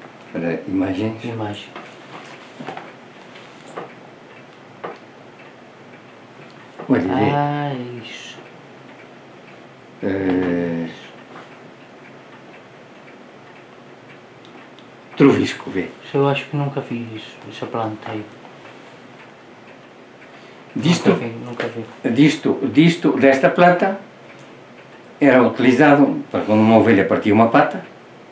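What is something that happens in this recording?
An elderly man speaks calmly into a nearby microphone, in bursts with pauses.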